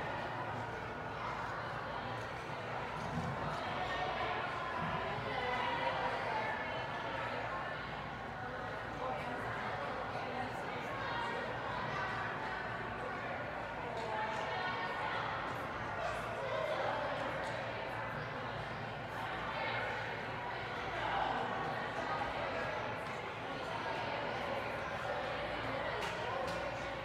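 Children chatter and call out in a large echoing hall.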